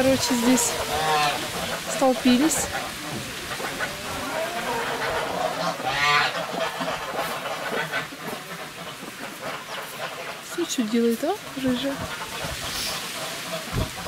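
Hens cluck and croon softly close by.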